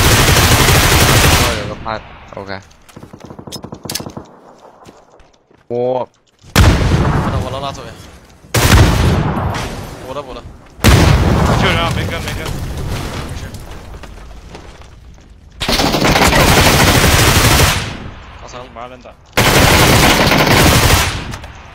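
Rapid gunfire crackles loudly in bursts.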